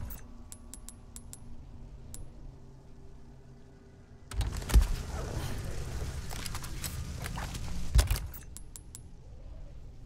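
Soft menu clicks tick several times.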